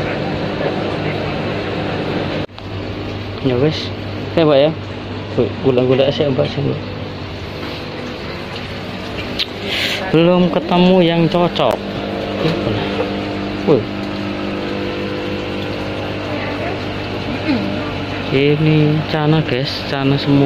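Aquarium air pumps hum steadily.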